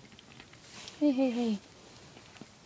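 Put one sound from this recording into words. A cat meows briefly nearby.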